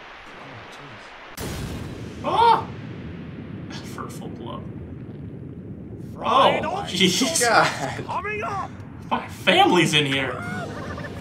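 A man shouts in a gruff, animated cartoon voice.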